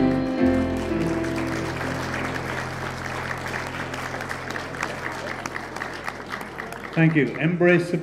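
A jazz band plays and ends on a ringing chord.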